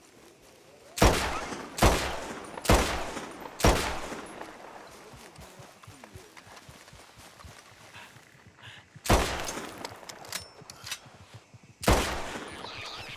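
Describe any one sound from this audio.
Rifle shots ring out loudly, one after another, echoing across open country.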